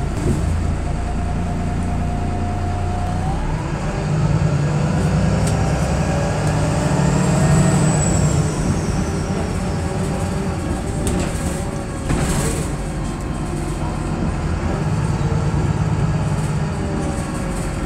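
A bus engine rumbles and whines steadily while driving.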